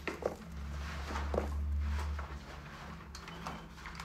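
A jacket rustles as it is taken off.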